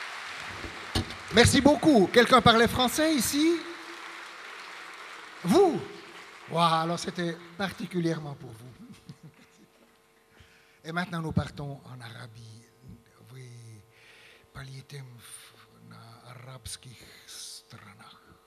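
An elderly man speaks with animation into a microphone, heard through loudspeakers in a hall.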